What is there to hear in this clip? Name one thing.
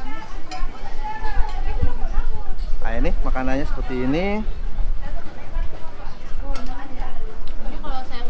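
Dishes and spoons clink on a table.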